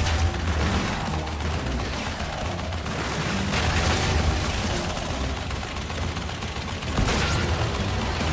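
Machine guns rattle in bursts.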